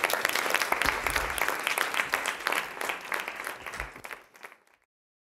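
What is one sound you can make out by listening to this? A crowd applauds steadily, then the clapping fades away.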